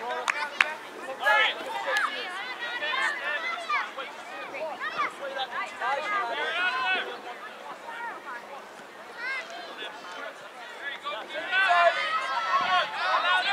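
Children shout and call out outdoors.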